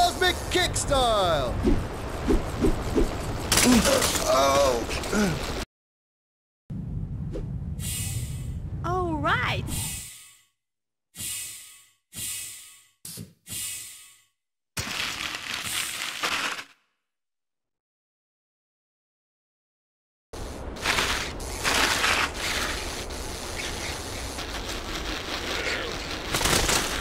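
A bicycle rattles and crunches downhill over rough ground.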